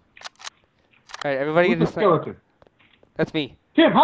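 A rifle magazine is swapped with metallic clicks.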